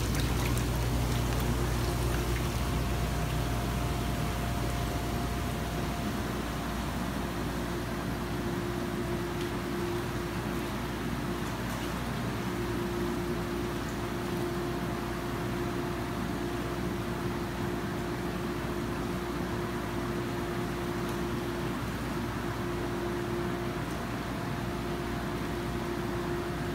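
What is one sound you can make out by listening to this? Water churns and bubbles steadily.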